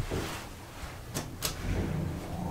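A lift button clicks as a finger presses it.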